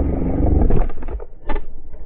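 A dirt bike engine roars close by.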